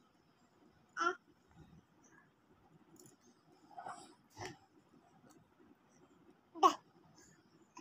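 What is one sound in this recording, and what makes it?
A small child babbles.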